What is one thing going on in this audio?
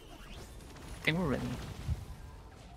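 Laser shots zap in quick bursts.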